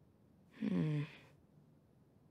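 A boy murmurs a short thoughtful hum.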